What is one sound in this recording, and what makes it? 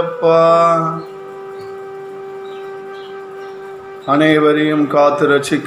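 A man chants in a deep, steady voice close to a microphone.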